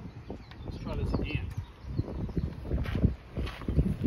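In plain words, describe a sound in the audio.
A man's footsteps crunch on gravel close by.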